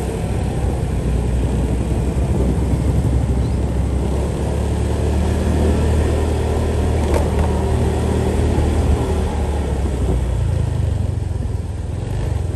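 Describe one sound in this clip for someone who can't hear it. A motorcycle engine rumbles steadily nearby.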